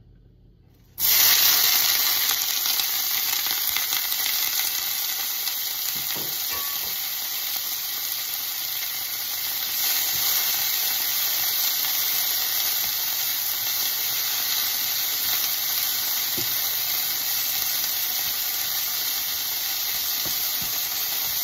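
Food sizzles loudly in a hot pan.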